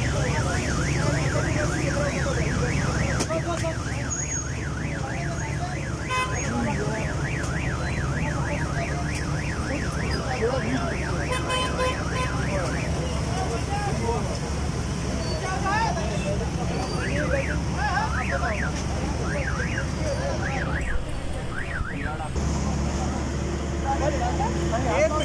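A crowd of men talk and call out loudly nearby.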